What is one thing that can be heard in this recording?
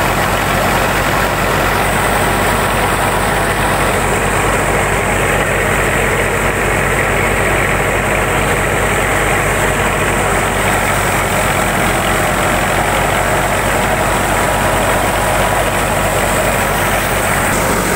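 A threshing machine roars and rattles steadily close by.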